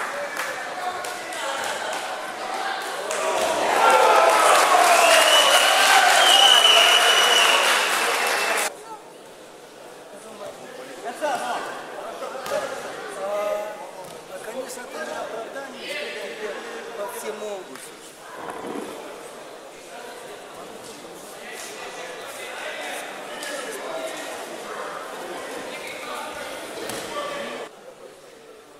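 A crowd of spectators chatters in an echoing hall.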